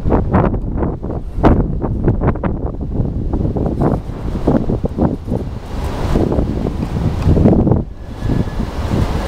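A freight train rumbles past nearby, its wheels clattering on the rails.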